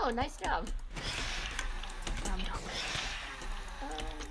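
Giant spiders hiss in a video game.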